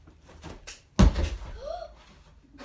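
A child thuds onto a floor mat.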